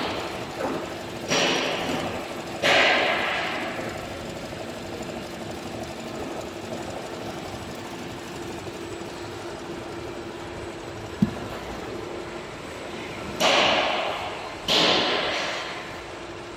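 An embroidery machine hums and rattles steadily as its needles stitch.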